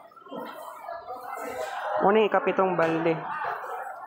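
A plastic bag rustles as a hand handles it.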